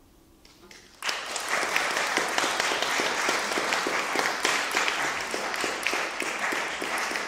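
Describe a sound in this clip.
A fiddle plays a lively tune.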